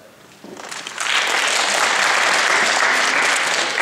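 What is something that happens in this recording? A crowd of young girls cheers and applauds loudly.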